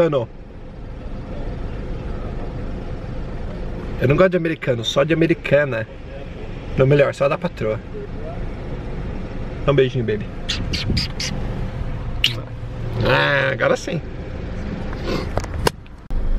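A car's engine hums steadily inside the cabin.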